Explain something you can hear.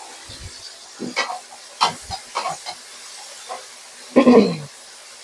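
Chopsticks clatter against a metal pan while stirring.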